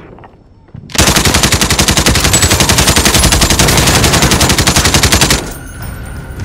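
A rifle fires in a rapid automatic burst, loud and close.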